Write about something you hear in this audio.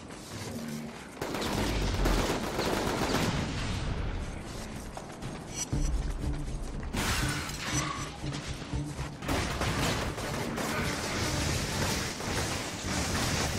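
Electric bolts zap and crackle in quick bursts.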